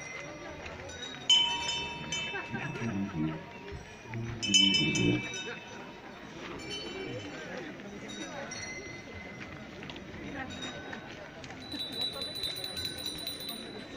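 A brass band plays with drums and cymbals.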